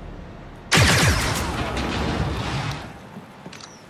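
A gunshot booms and echoes away.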